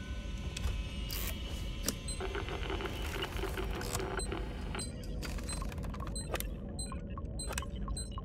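A handheld electronic device beeps as buttons are pressed.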